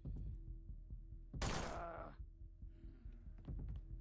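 A pistol fires two shots.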